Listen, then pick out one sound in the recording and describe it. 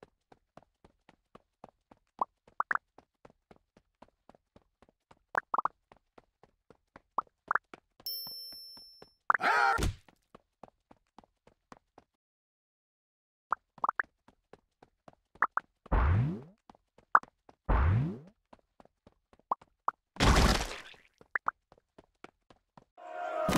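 Quick game pops and blips sound as figures join a running crowd.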